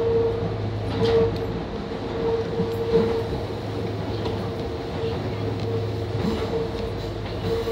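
A train rumbles steadily along the tracks with a low hum.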